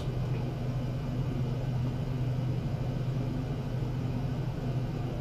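A low electrical hum drones steadily.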